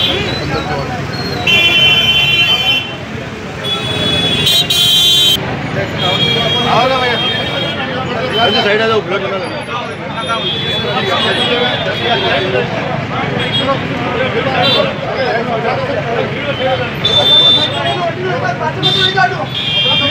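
A crowd of men talk and shout over one another close by, outdoors.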